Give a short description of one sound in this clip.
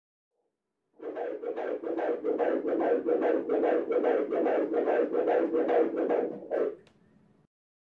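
A baby's heartbeat whooshes fast and steadily through an ultrasound machine's speaker.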